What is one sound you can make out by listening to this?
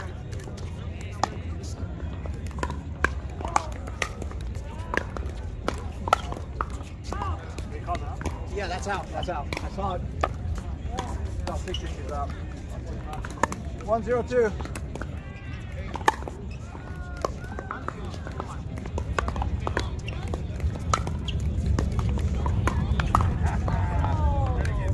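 Pickleball paddles hit a hollow plastic ball with sharp pops.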